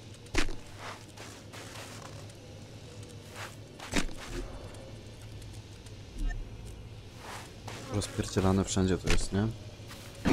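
Footsteps crunch in snow.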